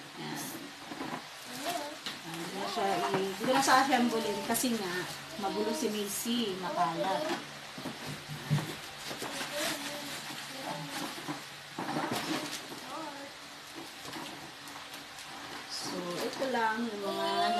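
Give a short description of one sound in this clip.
A woman talks casually nearby.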